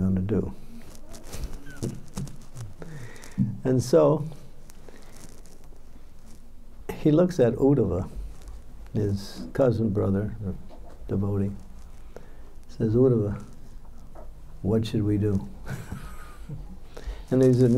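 An elderly man speaks calmly and warmly into a microphone, close by, with pauses.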